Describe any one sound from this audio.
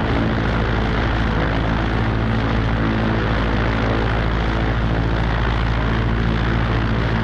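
Propeller engines of biplanes drone loudly and steadily.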